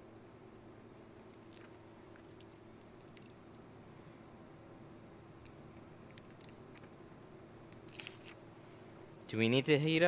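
A plastic door trim clicks softly as fingers pry at it.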